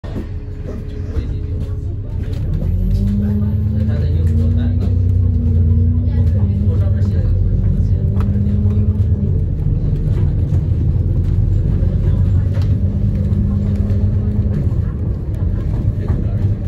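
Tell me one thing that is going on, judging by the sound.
Loose panels rattle inside a moving bus.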